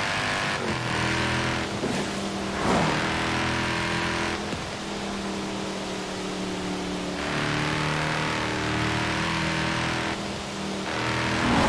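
A sports car engine roars steadily, rising and dropping in pitch.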